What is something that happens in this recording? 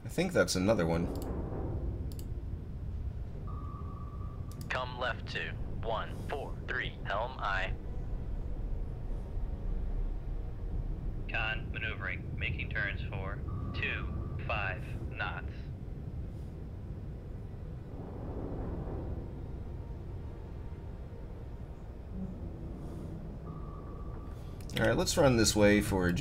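A submarine's propulsion rumbles low and steady underwater.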